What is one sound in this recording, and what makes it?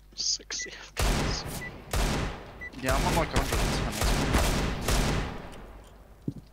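A pistol fires several loud shots in quick succession.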